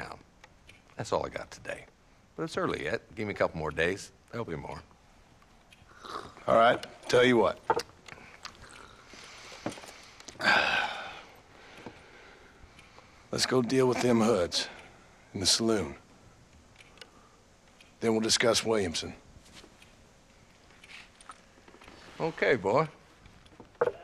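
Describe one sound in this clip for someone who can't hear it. An elderly man speaks in a gruff, slow voice, close by.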